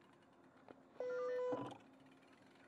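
An electronic reader beeps loudly once.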